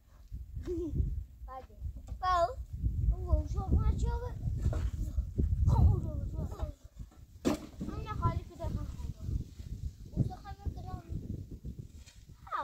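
A shovel scrapes and digs into loose dirt.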